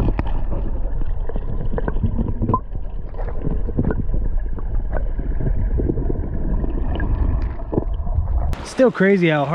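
Water rushes, heard muffled from underwater.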